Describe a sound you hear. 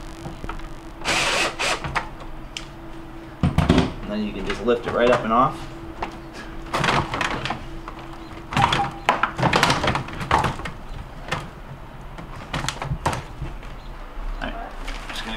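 A plastic freezer drawer rattles and clunks as it is lifted and handled.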